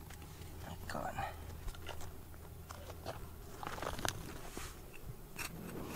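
Fingers rustle through gritty soil.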